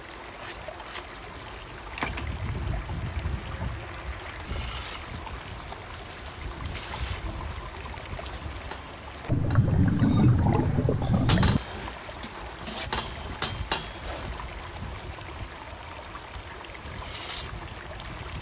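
A trowel scrapes and taps against bricks.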